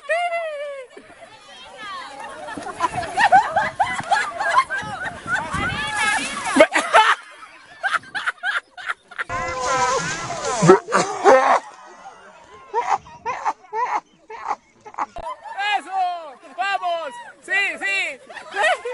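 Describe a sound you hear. A crowd of people laughs and shouts nearby outdoors.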